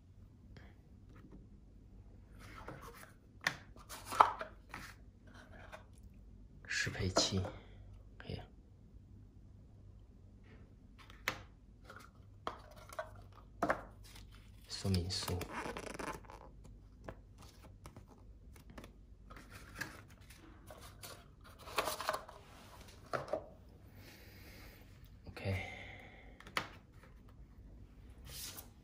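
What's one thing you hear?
Small plastic parts click and tap on a table.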